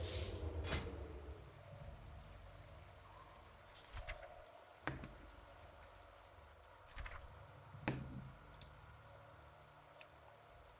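Soft interface clicks sound now and then.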